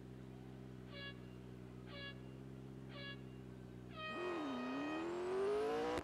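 Three short electronic beeps sound, followed by a longer high tone.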